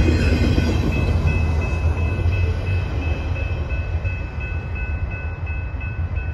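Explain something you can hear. Steel wheels squeal faintly against the rails.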